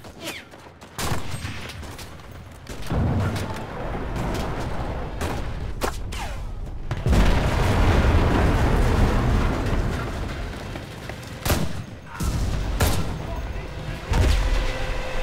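Rifle shots crack loudly, with a short echo.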